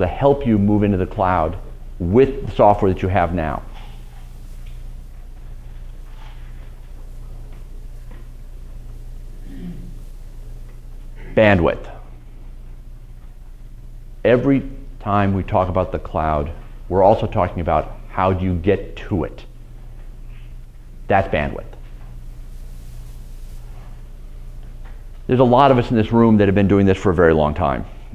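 A middle-aged man speaks calmly and slowly through a microphone, with long pauses.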